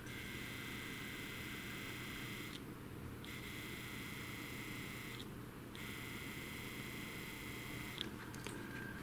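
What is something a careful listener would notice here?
A small electric motor whirs with a steady high hum, cutting out briefly twice.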